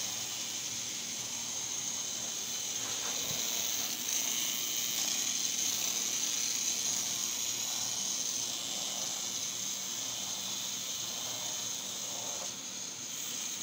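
A small toy motor whirs steadily.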